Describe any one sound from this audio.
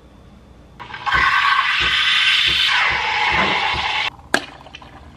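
An espresso machine hums and hisses steadily.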